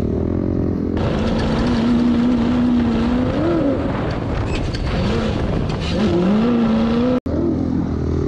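A dune buggy engine roars loudly at speed.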